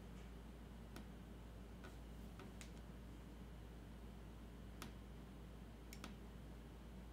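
Small light clicks and taps sound as a miniature figure is handled.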